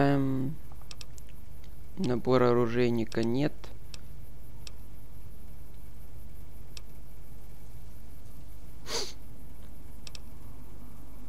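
Soft interface clicks tick as menu items are selected.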